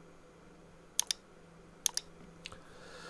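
A computer mouse clicks twice.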